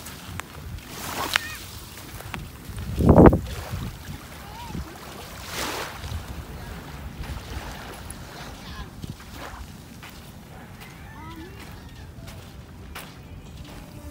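Small waves lap softly at the shore.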